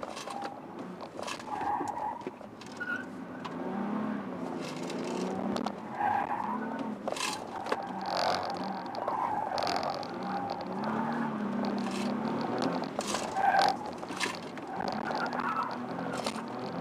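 A car engine revs up and down as the car accelerates and brakes.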